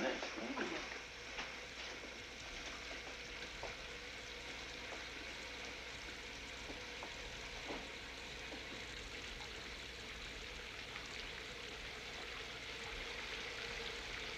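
Water sprays steadily from a shower.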